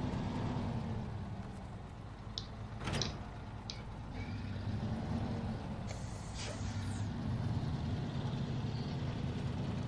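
A heavy truck engine idles with a low, steady rumble.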